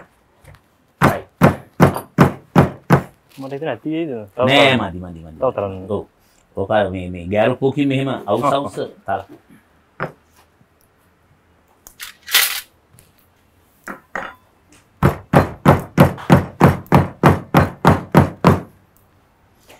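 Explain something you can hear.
A stone pestle pounds rhythmically in a stone mortar.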